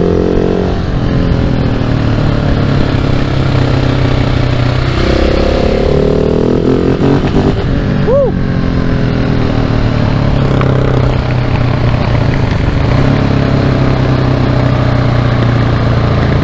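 A single-cylinder four-stroke supermoto engine revs up and down as the rider shifts gears.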